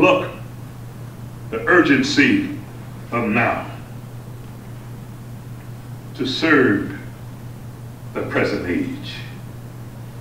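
An older man speaks slowly into a microphone, with long pauses.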